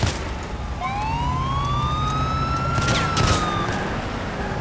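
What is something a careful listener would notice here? A car engine revs and roars as the car speeds off.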